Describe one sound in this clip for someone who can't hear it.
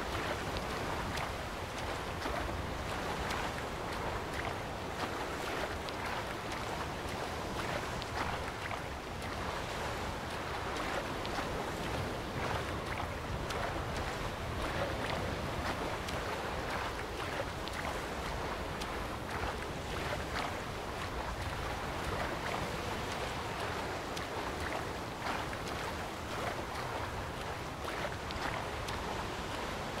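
A figure swims through choppy water with steady splashing.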